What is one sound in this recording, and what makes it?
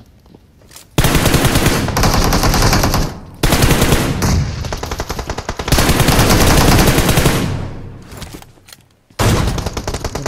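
A car engine roars loudly up close.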